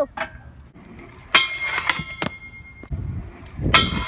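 A scooter grinds and scrapes along a metal rail.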